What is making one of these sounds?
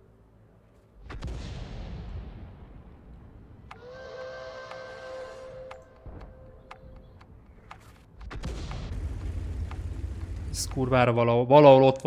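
A shell explodes with a deep, rumbling boom.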